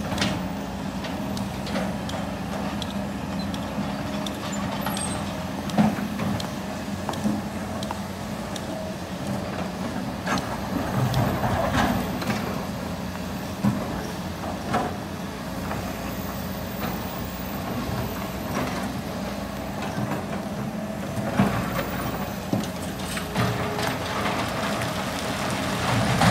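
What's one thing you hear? A diesel excavator engine rumbles steadily.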